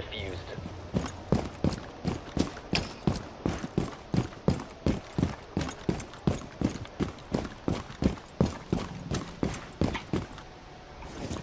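A gun fires in rapid, even bursts of sharp shots.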